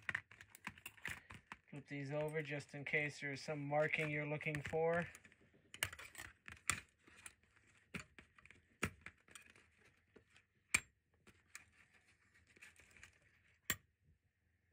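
Metal scissors clink and tap softly against a hard surface.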